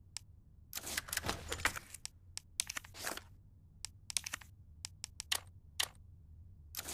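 Short menu clicks and beeps sound in quick succession.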